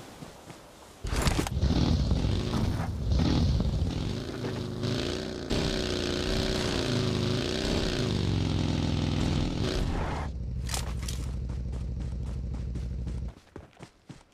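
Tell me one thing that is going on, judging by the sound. A dune buggy engine revs while driving over rough ground.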